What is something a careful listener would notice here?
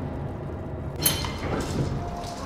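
An elevator clanks and rattles.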